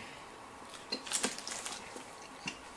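Food wrappers rustle and crinkle.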